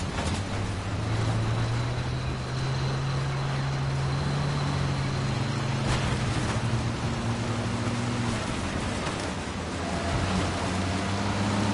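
A propeller engine drones steadily close by.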